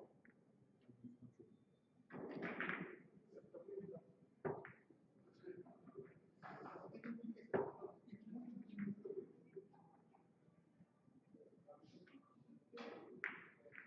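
Billiard balls clack together as they are packed into a rack on a table.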